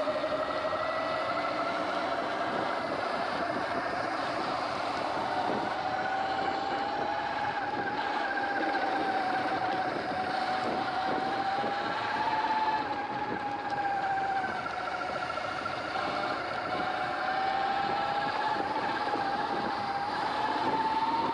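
Tyres crunch and rumble over a dirt track.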